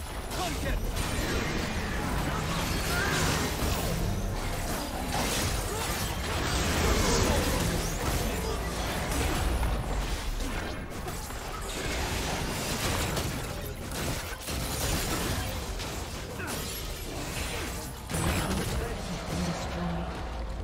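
Spell blasts crackle and boom during a busy fight.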